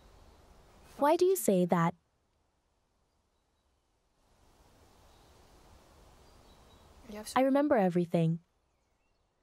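A woman speaks quietly up close.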